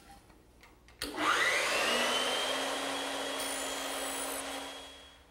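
A machine motor starts up and whirs steadily.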